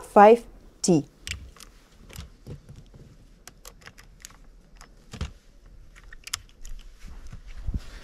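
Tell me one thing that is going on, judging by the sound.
Shotgun shells click as a man loads a shotgun.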